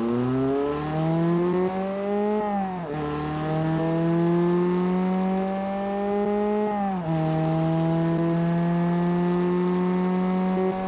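A car engine revs up as it accelerates, dropping in pitch at each gear change.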